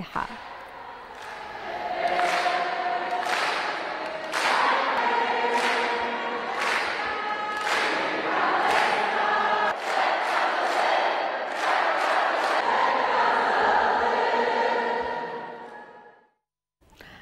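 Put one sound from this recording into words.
A large crowd chants in unison in an echoing hall.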